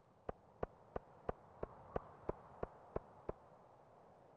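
Footsteps tap along at an even pace.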